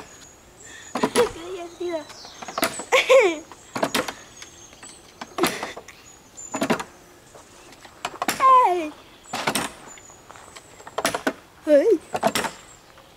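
A child laughs and squeals with delight close by.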